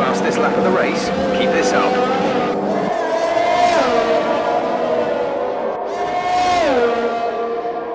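A racing car engine screams at high revs and drops in pitch as it shifts gears.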